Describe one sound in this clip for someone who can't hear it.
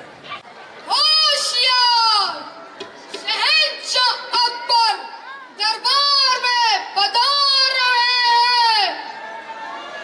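Young men sing out loudly together through microphones in an echoing space.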